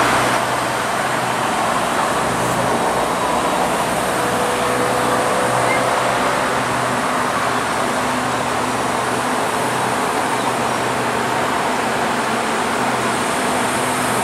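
A diesel locomotive idles with a low, steady rumble.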